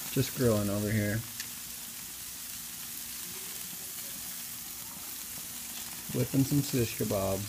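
Food sizzles on a hot grill.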